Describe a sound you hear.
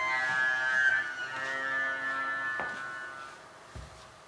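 A violin plays long, high sustained notes in a quiet, echoing room, then fades away.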